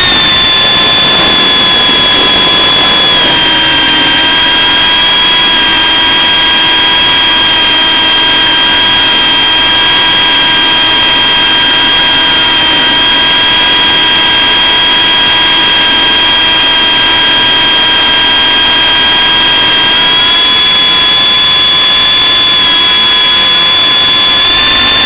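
An electric motor whines steadily and loudly close by, its pitch dipping slightly and rising again.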